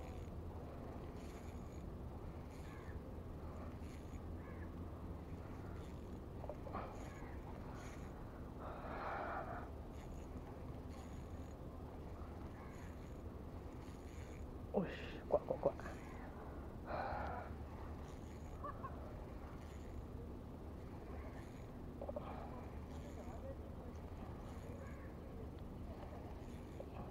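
A fishing reel clicks and whirs as its handle is wound.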